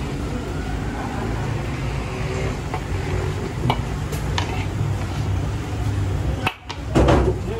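A metal scoop scrapes and clinks against a large cooking pot.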